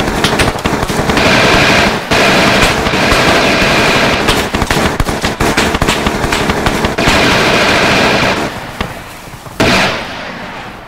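Loud gunfire rattles in rapid bursts.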